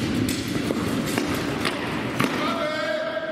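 Blades strike a wooden shield in an echoing hall.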